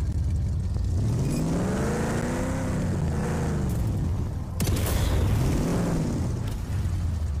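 A vehicle engine revs up and down.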